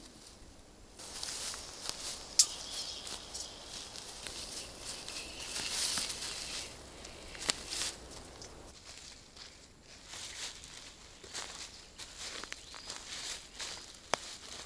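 Footsteps crunch on dry forest floor.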